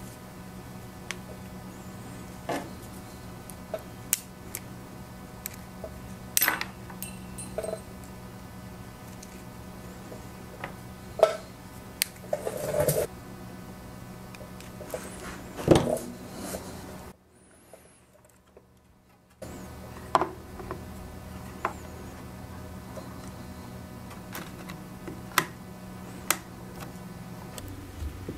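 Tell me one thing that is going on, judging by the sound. A steady low electrical hum runs in the background.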